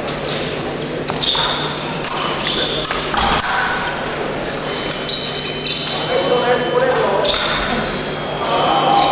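A crowd murmurs and calls out in a large echoing hall.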